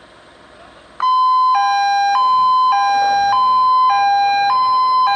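A fire engine's two-tone siren blares loudly, alternating high and low.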